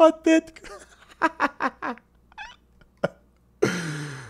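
A man laughs loudly into a headset microphone.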